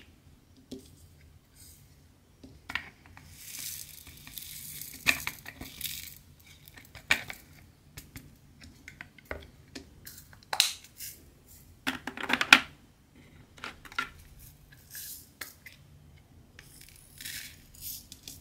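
Small plastic beads click and rattle in a plastic tray.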